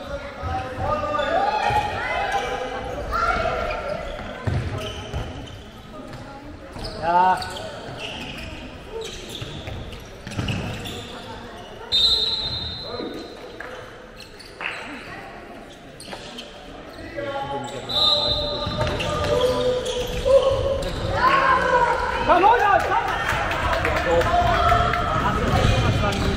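A handball bounces on a wooden floor in a large echoing hall.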